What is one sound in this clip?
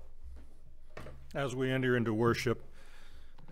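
An elderly man speaks clearly into a microphone in a softly echoing room.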